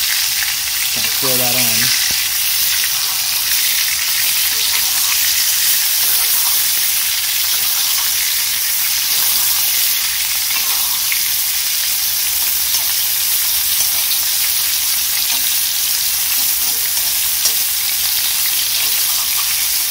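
Butter sizzles and spits loudly in a hot pan.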